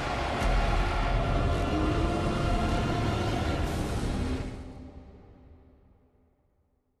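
Deep, dark game music swells and slowly fades away.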